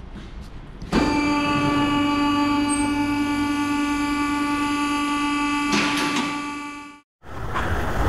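A vehicle lift motor hums steadily.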